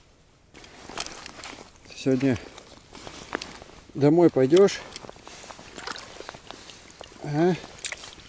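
Water splashes gently as a fish is lowered into it.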